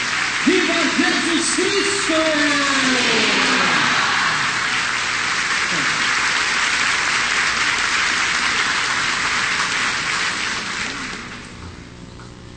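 A crowd applauds loudly in a large echoing hall, fading away near the end.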